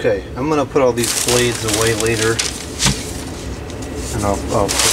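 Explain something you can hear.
Paper wrapping rustles and crinkles as it is handled.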